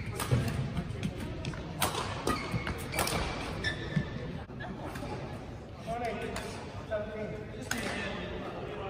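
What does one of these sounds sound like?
Rackets strike a shuttlecock with sharp pops in an echoing hall.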